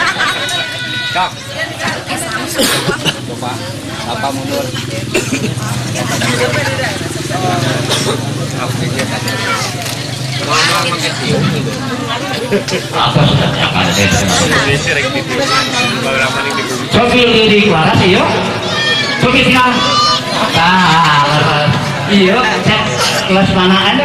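A crowd of women and men chatter all around, close by.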